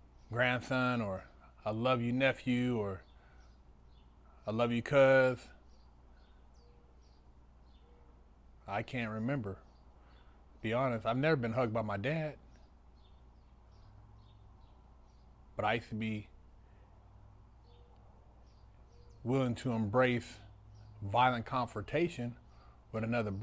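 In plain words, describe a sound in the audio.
A middle-aged man speaks calmly and close to a clip-on microphone, with pauses.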